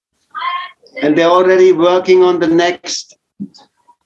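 An older man chants in a long, held singing tone.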